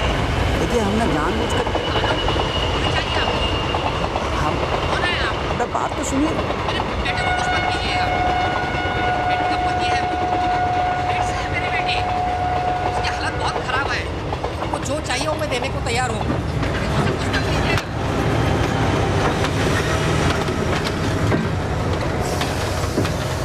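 A train rumbles past close by.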